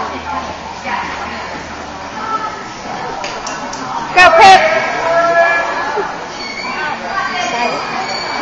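A crowd of young girls chatters in a large hall.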